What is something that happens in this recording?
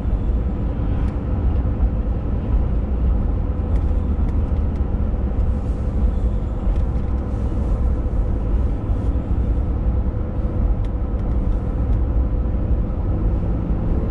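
Tyres roar on the road at speed.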